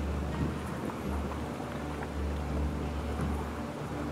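A boat engine hums low and steadily.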